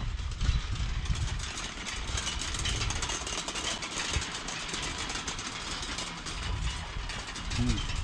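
Prayer wheels rumble and creak as hands spin them.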